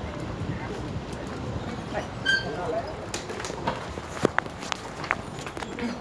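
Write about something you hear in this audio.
A door clicks and thuds as it opens and closes.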